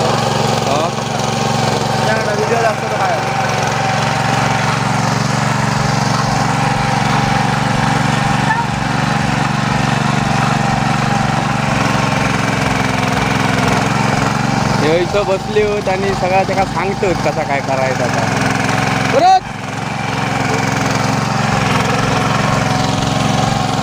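A small engine chugs steadily close by.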